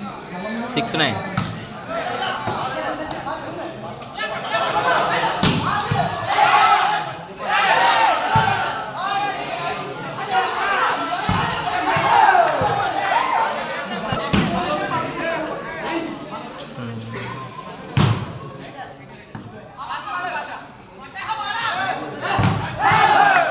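A ball thuds against hands as players strike it.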